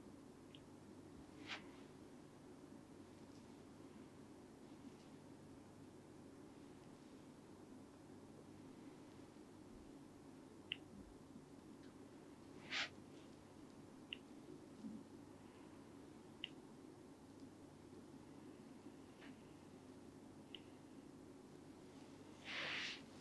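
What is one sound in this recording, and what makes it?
Hair crackles softly close by as fingers rub the scalp.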